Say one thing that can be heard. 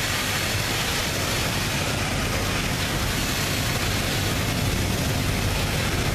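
Steel wheels clatter on the rails.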